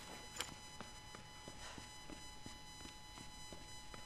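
Footsteps climb wooden stairs.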